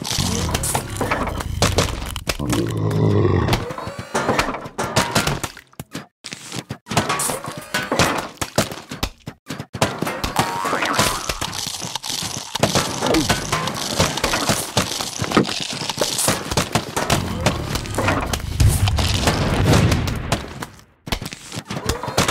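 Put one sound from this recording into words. Cartoon plants lob melons that land with repeated soft splats and thuds.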